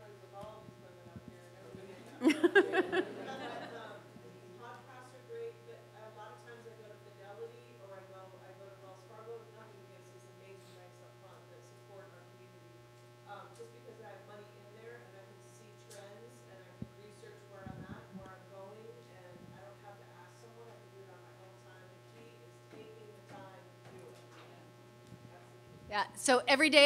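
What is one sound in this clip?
A woman speaks to an audience through a microphone in a large room.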